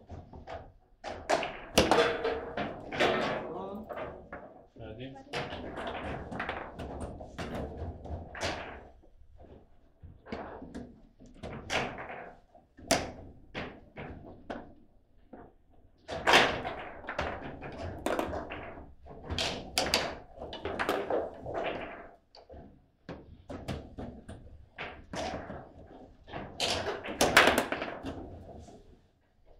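Foosball rods clack and a ball knocks sharply against the table.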